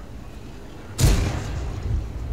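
A loud explosion booms.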